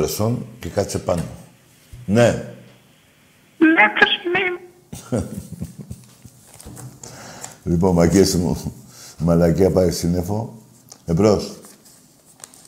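An elderly man talks with animation into a microphone, in bursts and pauses.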